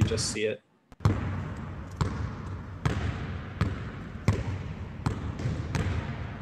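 A basketball bounces repeatedly on a hard floor in an echoing gym.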